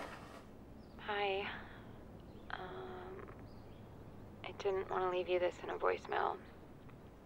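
A man speaks quietly into a phone, close by.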